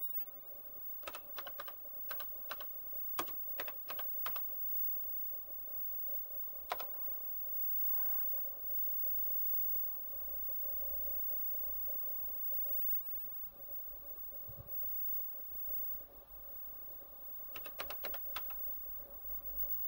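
Keys clack in short bursts of typing on an old keyboard.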